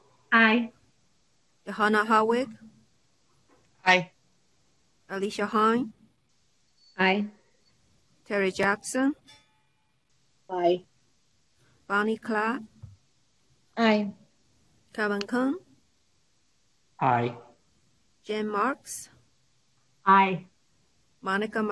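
Women and men take turns speaking short replies over an online call.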